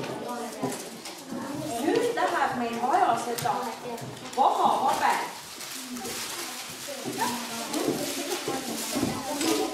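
A woman speaks to children in a room.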